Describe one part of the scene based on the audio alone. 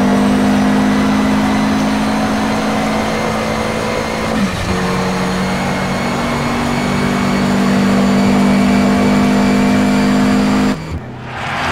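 A racing car engine roars at high speed, rising in pitch as it accelerates.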